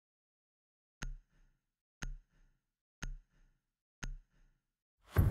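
A countdown timer beeps once a second.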